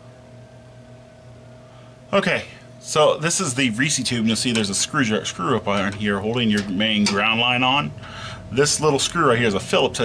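A small wrench clicks against a metal fitting.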